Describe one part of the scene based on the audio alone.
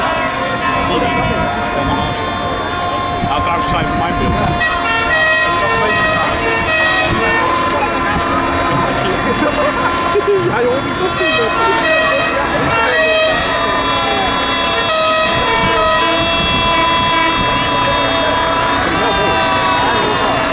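A heavy truck engine rumbles as the truck slowly drives closer.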